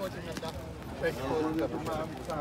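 People talk at a distance outdoors.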